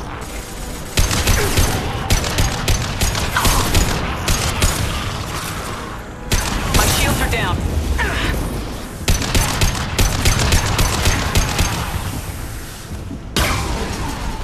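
Rapid gunfire bursts out in loud, repeated volleys.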